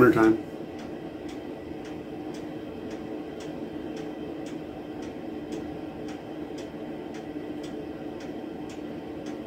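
A man puffs softly on a pipe close by.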